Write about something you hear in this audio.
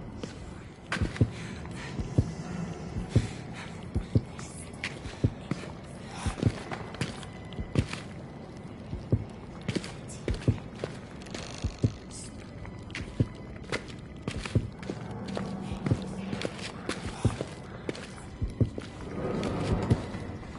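Footsteps tap steadily across a hard floor.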